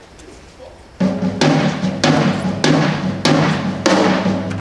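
A school band starts playing loudly in an echoing hall.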